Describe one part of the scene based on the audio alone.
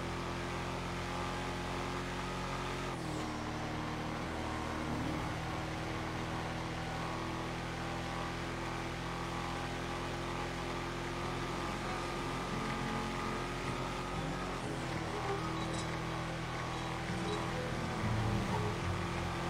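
A pickup truck engine hums steadily as it drives along a road, with a brief drop in pitch as it shifts gear.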